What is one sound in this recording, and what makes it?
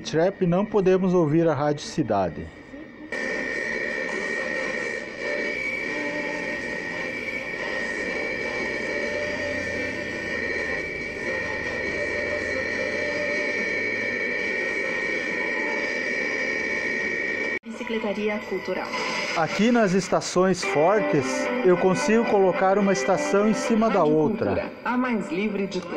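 A radio plays a crackly broadcast that jumps between stations as it is tuned.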